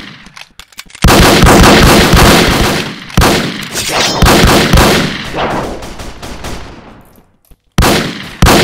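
Gunfire rings out in loud, echoing bursts.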